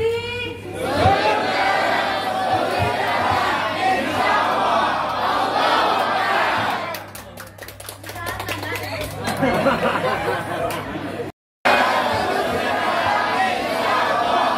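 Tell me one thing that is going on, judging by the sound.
A large crowd of men chants together.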